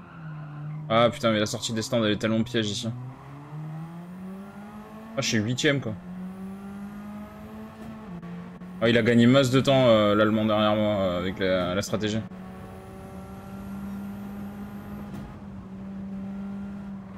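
A racing car engine drones and climbs in pitch as it speeds up through the gears.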